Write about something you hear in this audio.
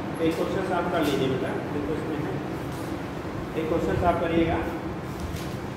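A man speaks nearby in a calm, teaching voice.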